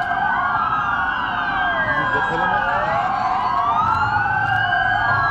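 A fire engine's diesel engine rumbles as it drives.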